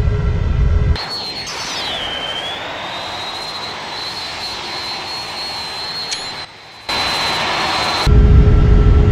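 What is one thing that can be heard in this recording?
A jet airliner's engines whine high and steady as it takes off.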